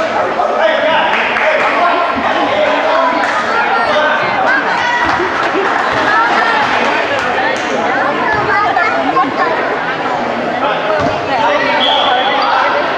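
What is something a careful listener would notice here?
A crowd of spectators talks and calls out in a large echoing gym.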